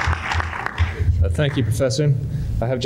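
An older man begins speaking through a microphone.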